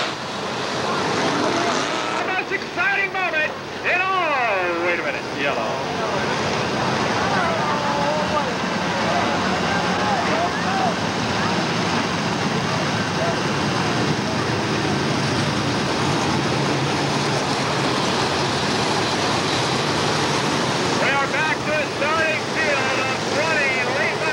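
Race car engines roar loudly as the cars speed past.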